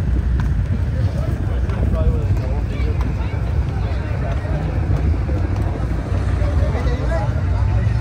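A small truck engine putters past.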